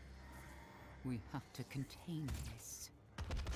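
A young woman speaks briefly close to a microphone.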